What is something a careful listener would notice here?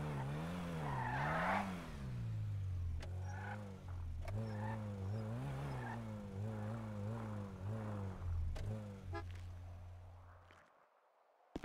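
A car engine revs hard and rises and falls.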